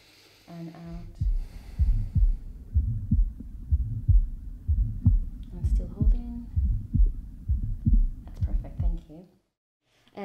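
A heartbeat thumps steadily through a stethoscope.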